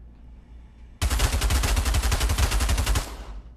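A gun fires rapidly in a long burst.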